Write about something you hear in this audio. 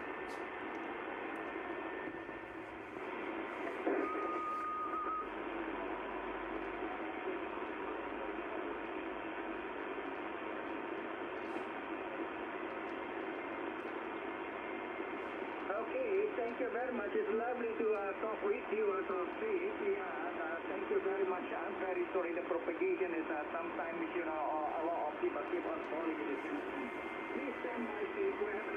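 Static hisses steadily from a radio loudspeaker.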